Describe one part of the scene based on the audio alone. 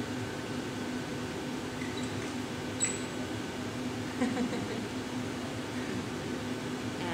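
Furnaces roar steadily.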